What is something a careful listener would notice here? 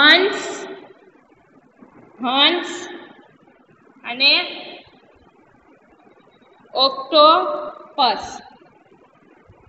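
A young woman speaks clearly in short phrases, close by.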